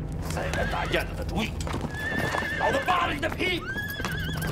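A man shouts angrily close by.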